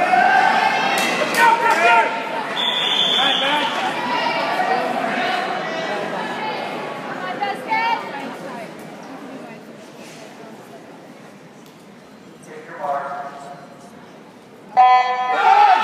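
A crowd of young people talks and shouts in a large echoing hall.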